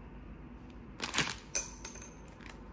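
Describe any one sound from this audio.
Wooden chopsticks snap apart with a sharp crack.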